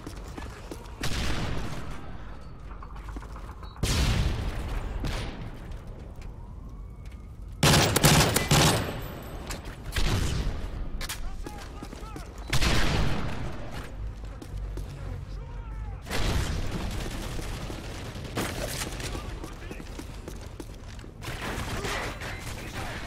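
Gunshots fire in short bursts and echo.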